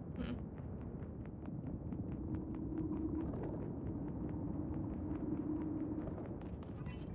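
Light metallic footsteps patter quickly and evenly.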